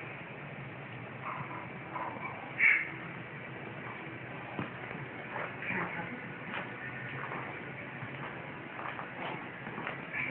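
A small dog rolls and wriggles on a rug.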